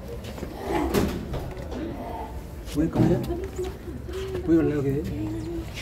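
A young man speaks up close.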